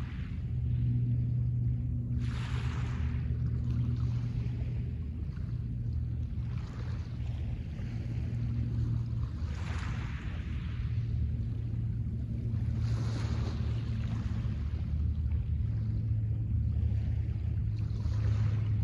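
Small waves wash gently onto a pebble shore.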